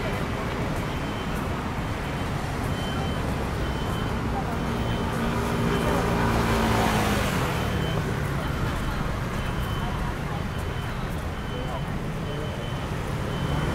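Traffic passes by on a nearby road.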